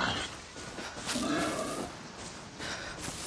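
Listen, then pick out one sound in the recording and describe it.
Leaves rustle as someone pushes through dense plants.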